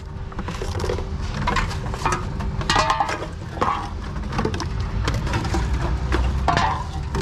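Empty cans and plastic bottles rattle and clink as they are handled.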